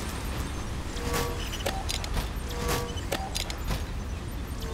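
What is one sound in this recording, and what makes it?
Short electronic chimes and clicks ring out now and then.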